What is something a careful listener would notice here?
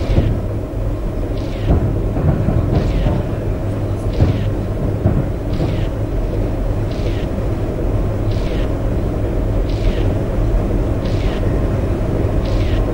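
A windscreen wiper swishes back and forth at a steady pace.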